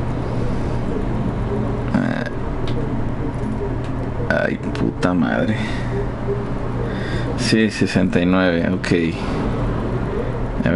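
A safe's combination dial clicks as it turns.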